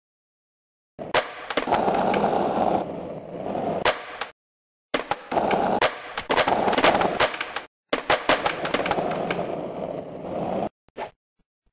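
Skateboard wheels roll and rumble over a ramp.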